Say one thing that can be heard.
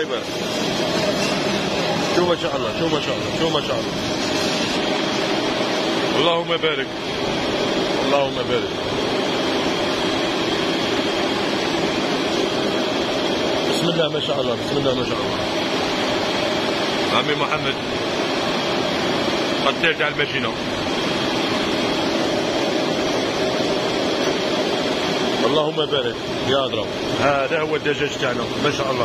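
A conveyor machine hums and rattles steadily.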